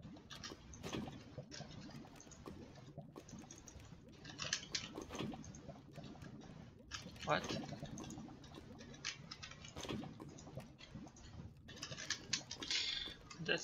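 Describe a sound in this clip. Lava bubbles and pops.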